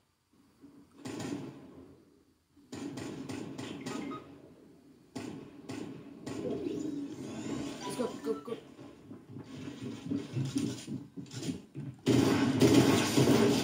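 Video game sounds play through a small loudspeaker.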